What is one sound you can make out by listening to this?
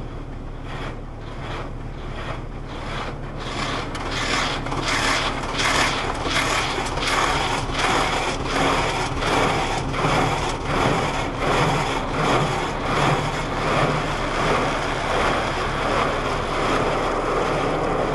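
Water sprays and drums on a car's windscreen in a rhythmic pulsing rush.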